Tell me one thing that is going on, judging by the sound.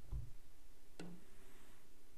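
A cue ball is struck with a sharp click.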